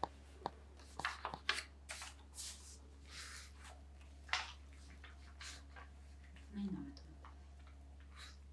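Papers rustle and shuffle.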